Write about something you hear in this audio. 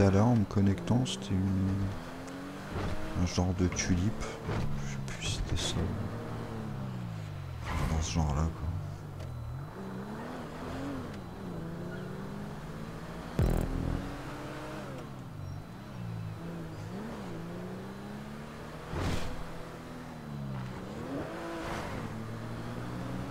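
A car engine revs up and down throughout.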